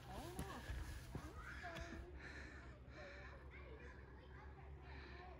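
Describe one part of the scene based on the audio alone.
Footsteps crunch on dry leaves and stones.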